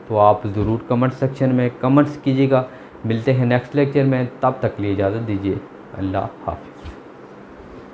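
A man speaks calmly and clearly into a close microphone, like a teacher explaining.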